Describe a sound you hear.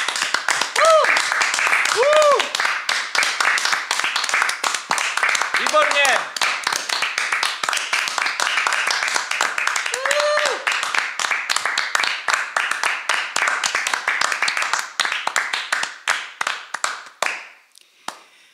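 A crowd applauds steadily in a room, then the clapping fades away.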